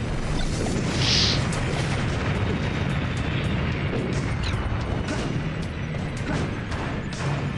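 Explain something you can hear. Flames roar and whoosh up in bursts.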